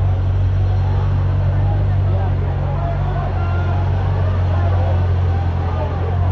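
A car engine hums nearby.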